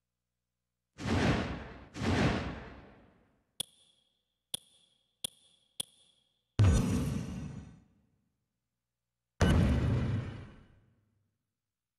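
Short whooshing swishes sweep past as menu pages change.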